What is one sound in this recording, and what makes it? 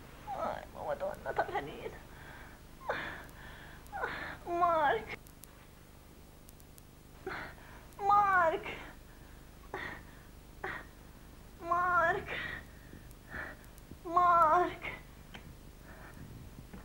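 An elderly woman moans and whimpers close by.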